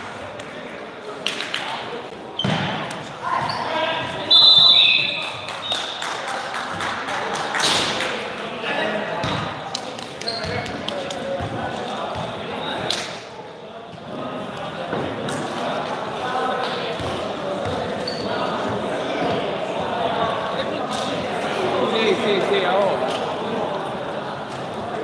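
A crowd of young men and women chatter nearby.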